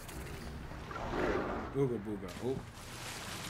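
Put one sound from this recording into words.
Water splashes loudly as a body plunges in.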